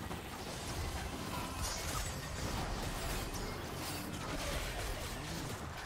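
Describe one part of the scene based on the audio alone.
Fighting sound effects from a video game burst and crackle rapidly.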